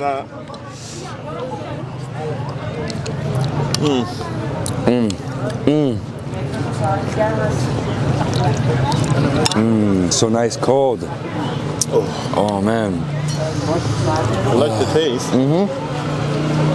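A man hums and murmurs with delight while eating, close by.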